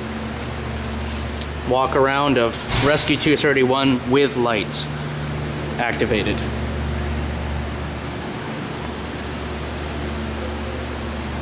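A large engine idles with a low, steady rumble.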